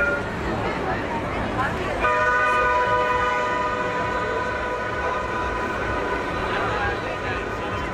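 A tram hums as it passes close by.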